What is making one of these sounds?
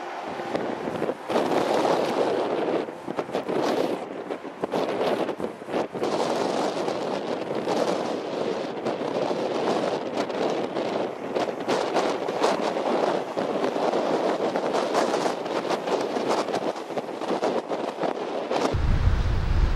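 Heavy surf roars and crashes.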